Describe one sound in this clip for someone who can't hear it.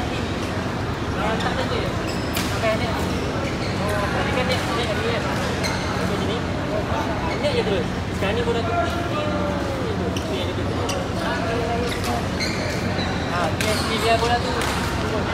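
Sports shoes squeak sharply on a court floor.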